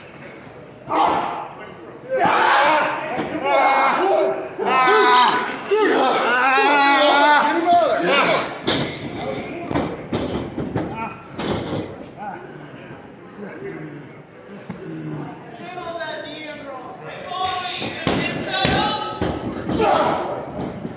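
Wrestlers' bodies thud onto a wrestling ring mat.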